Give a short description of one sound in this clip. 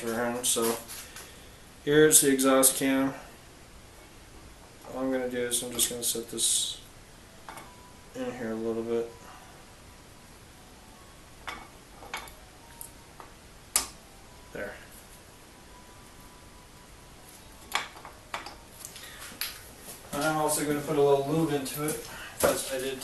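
A man talks calmly close by.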